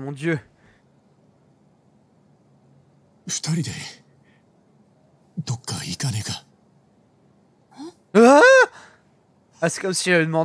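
A man speaks in short, calm bursts with pauses between them.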